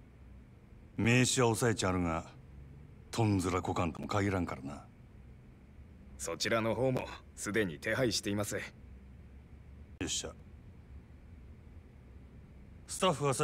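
A young man talks calmly into a microphone, close by.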